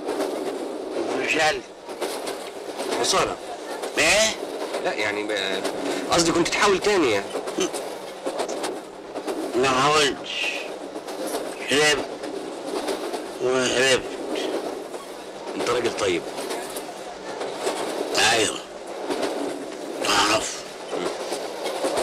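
Middle-aged men talk with animation, close by.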